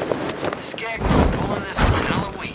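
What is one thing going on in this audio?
A heavy thud lands on the ground.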